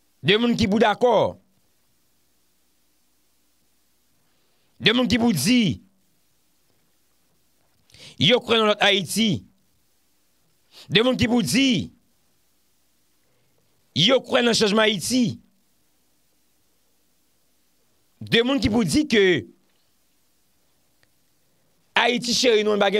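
A man speaks calmly into a close microphone in short phrases with pauses between them.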